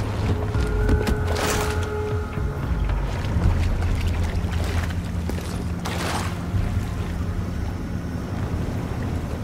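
Water rushes and churns with a steady low roar.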